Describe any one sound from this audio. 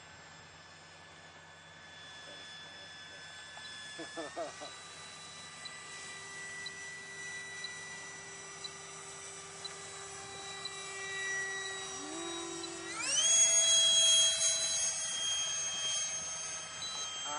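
Small drone motors whine steadily overhead, rising sharply in pitch near the end.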